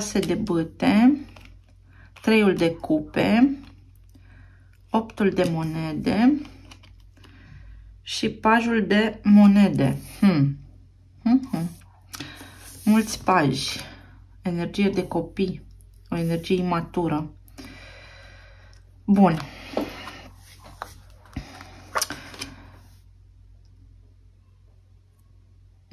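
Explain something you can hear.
Cards tap lightly as they are laid down on a table.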